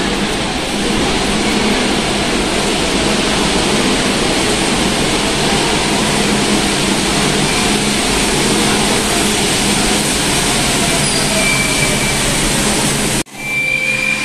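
A metro train rumbles into an echoing underground station with a loud, steady roar.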